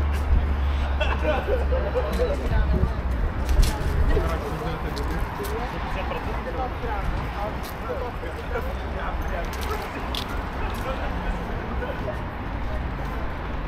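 Footsteps tap on paving stones nearby.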